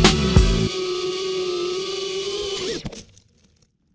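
A small drone's propellers whine loudly and then cut out.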